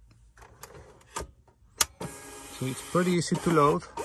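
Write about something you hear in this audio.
A printer lid snaps shut with a click.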